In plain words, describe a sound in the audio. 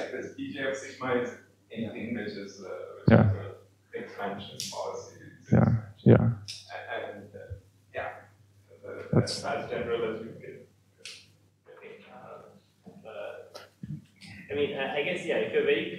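A young man lectures calmly through a headset microphone in an echoing hall.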